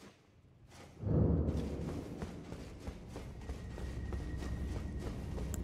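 Footsteps tread on stone in a large echoing space.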